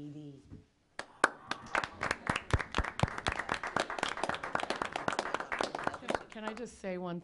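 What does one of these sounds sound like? A small audience applauds.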